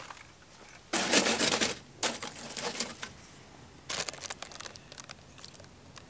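Chunks of charcoal clatter and scrape in a metal bin.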